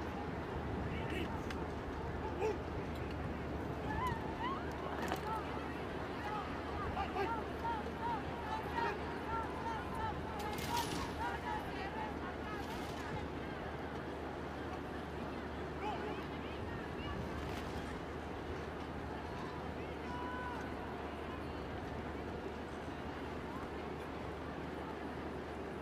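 A large outdoor crowd murmurs steadily.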